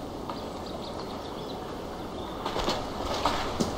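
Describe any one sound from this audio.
Water laps gently against wooden boats at the shore.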